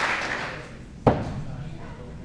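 An axe thuds into a wooden target.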